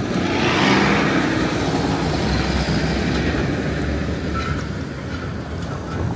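A delivery van drives past.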